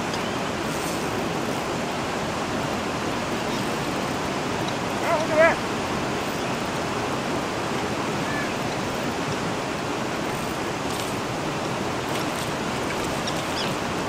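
Water rushes and churns steadily nearby.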